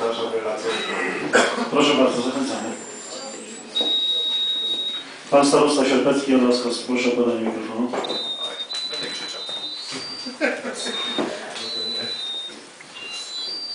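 A middle-aged man speaks into a microphone over a loudspeaker in a room that echoes.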